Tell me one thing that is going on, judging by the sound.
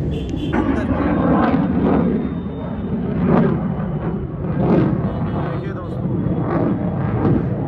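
Fireworks pop and crackle high overhead.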